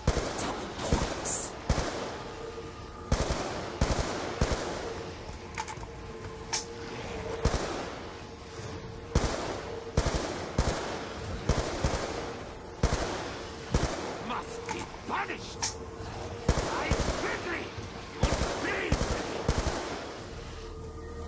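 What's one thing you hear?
Gunshots fire in loud, irregular bursts.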